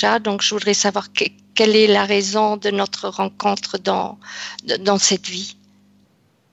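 An older woman speaks steadily over an online call.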